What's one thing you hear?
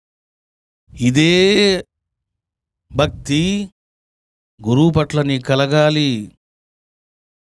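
A middle-aged man sings slowly and calmly into a microphone, in sustained phrases.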